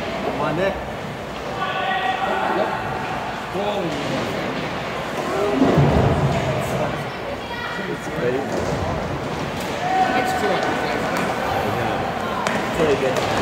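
Skate wheels roll and squeak across a hard floor in a large echoing hall.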